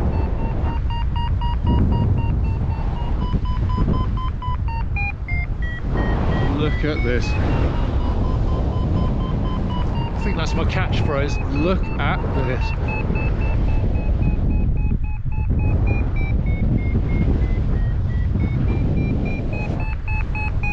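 Wind rushes hard past a microphone outdoors.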